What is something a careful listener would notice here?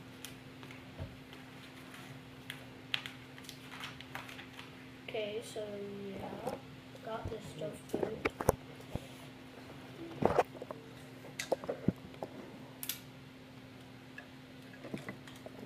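Plastic toy pieces click and snap together.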